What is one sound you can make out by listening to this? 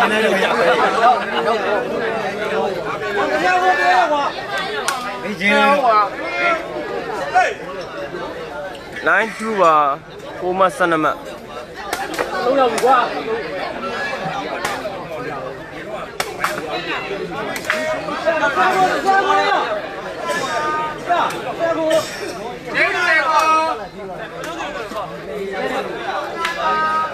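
A crowd of spectators chatters and calls out loudly outdoors.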